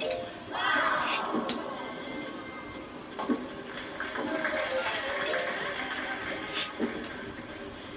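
A bowling ball rolls down a lane through a television speaker.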